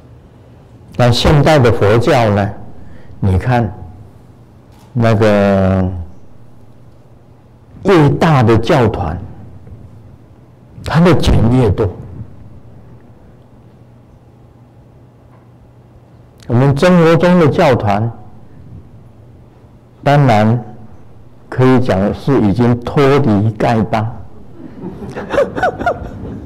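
An elderly man chants in a deep voice in short phrases, with pauses between them, in a reverberant room.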